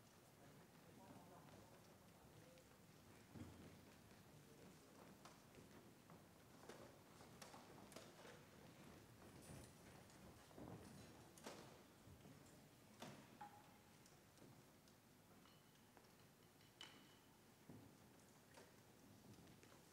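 Instruments and stands knock and clatter softly in a large echoing hall.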